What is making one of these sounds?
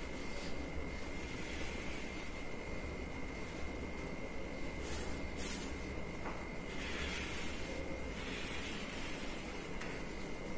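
Chalk scratches and taps on a board.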